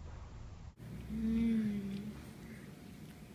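A young girl hums with pleasure with her mouth full.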